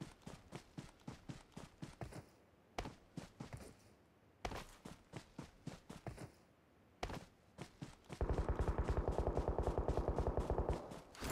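Quick footsteps rustle through grass.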